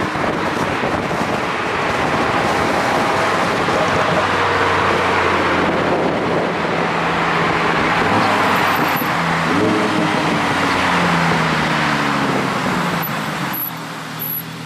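A sports car engine roars as the car drives along.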